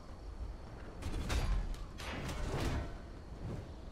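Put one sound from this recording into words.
Magical blasts and weapon strikes crackle and whoosh in a short burst of fighting.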